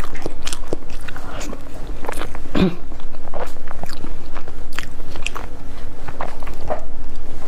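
A young woman chews soft food with wet, smacking sounds close to a microphone.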